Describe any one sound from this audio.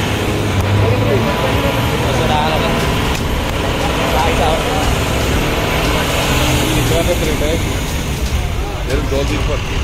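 A bus engine rumbles as the bus drives along a road below.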